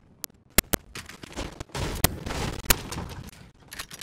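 Footsteps clatter up metal stairs.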